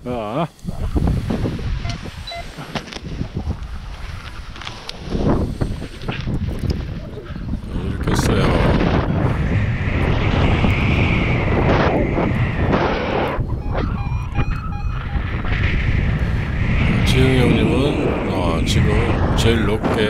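Wind roars loudly against a microphone.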